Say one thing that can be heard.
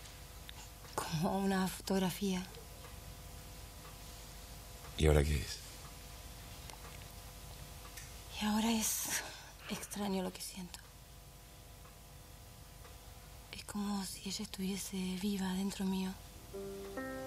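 A young woman speaks softly and tearfully up close.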